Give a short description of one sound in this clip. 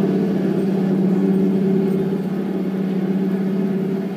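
A man plays an electric guitar through an amplifier.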